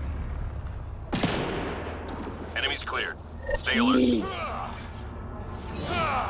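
A shimmering electronic whoosh sounds as a figure beams in.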